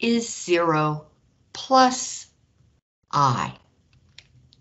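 An elderly woman explains calmly and clearly into a microphone, in short bursts.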